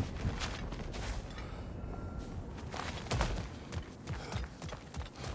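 Heavy footsteps crunch on gravel at a run.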